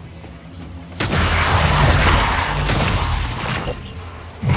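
Gunfire and blasts burst loudly from a game.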